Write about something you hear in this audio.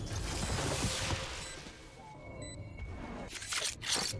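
A crystal wall rises with a whooshing rush.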